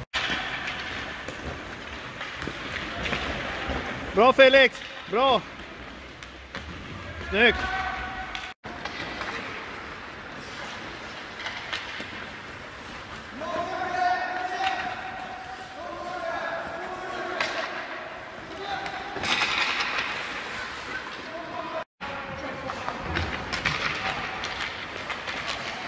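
Hockey sticks clack and tap pucks on the ice.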